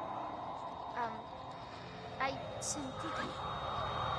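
A young woman asks something quietly.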